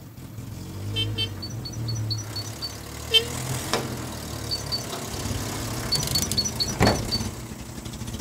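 A small bird chirps.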